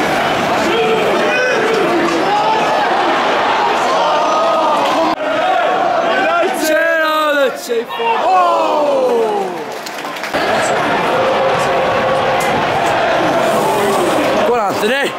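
A large stadium crowd sings and chants loudly all around.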